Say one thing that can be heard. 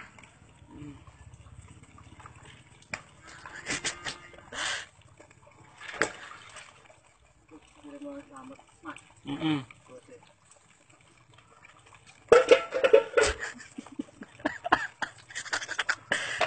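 Water pours from a hose into a basin.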